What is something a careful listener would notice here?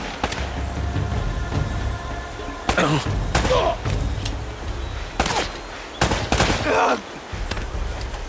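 Pistol shots ring out in sharp bursts.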